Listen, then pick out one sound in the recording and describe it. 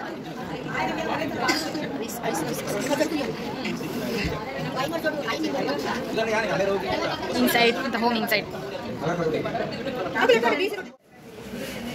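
A crowd of adults chatters nearby in a busy, lively room.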